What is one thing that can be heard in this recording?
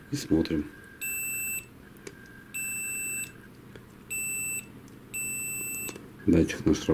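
A multimeter beeps in short bursts.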